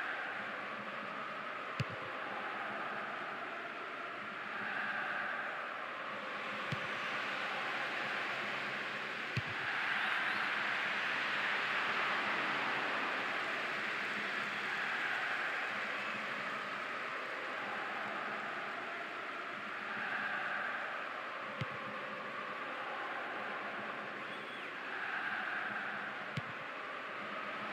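A stadium crowd roars and cheers steadily, swelling now and then.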